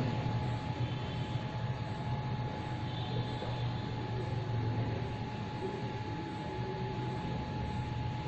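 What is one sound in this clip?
A man speaks steadily nearby, explaining.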